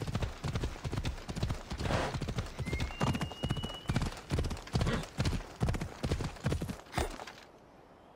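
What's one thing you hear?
A horse's hooves clatter rapidly on rocky ground.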